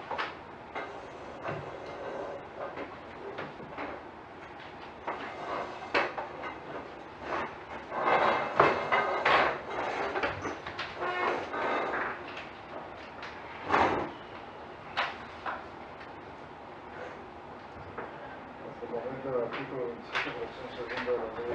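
Several men talk in a room, some way off.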